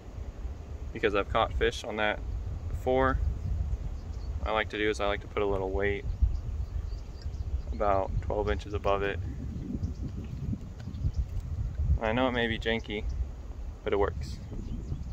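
A young man speaks calmly close by, in short phrases.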